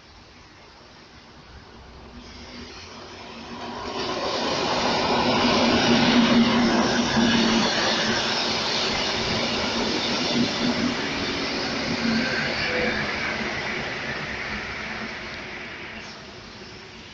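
An electric train approaches and rumbles past close by, its wheels clattering on the rails.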